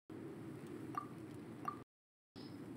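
Short electronic blips sound as a game menu item is chosen.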